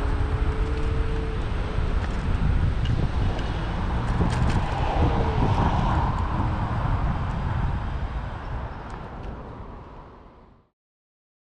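Wind rumbles loudly against the microphone outdoors and fades away at the end.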